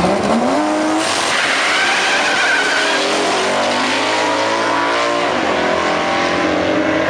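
A racing car roars off down the track and fades into the distance.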